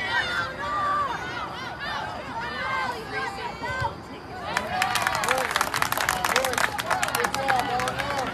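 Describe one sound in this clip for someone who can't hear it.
Spectators nearby chatter and call out outdoors.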